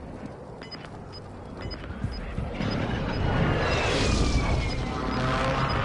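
Footsteps crunch on dry dirt.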